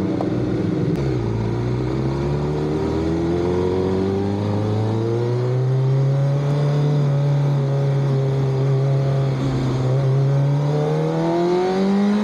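A motorcycle engine pulls away and rises steadily in pitch as it speeds up.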